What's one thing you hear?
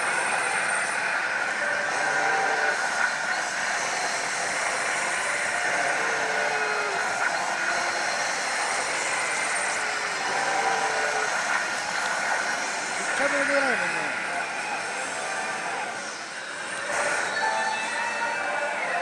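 A slot machine plays loud electronic music and chiming sound effects.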